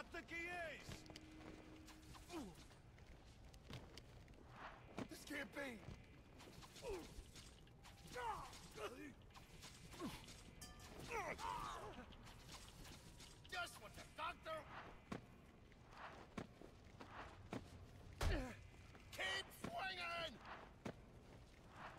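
Punches and kicks land with heavy thuds in a brawl.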